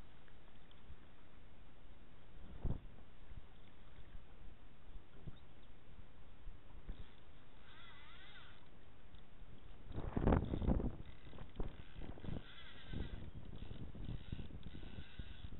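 Water laps and splashes against the side of a small boat.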